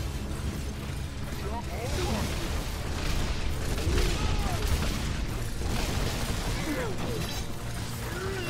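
Magic blasts crackle and boom during a game fight.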